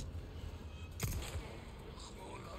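A gunshot fires.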